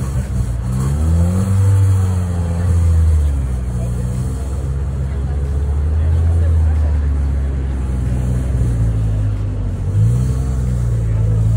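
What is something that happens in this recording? A car engine revs briefly and settles back to idle.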